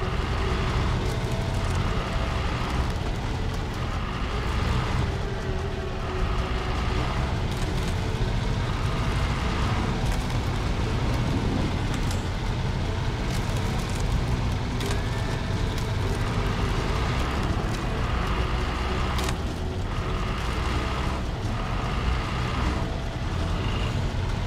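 A truck engine rumbles low and steady as the truck crawls along.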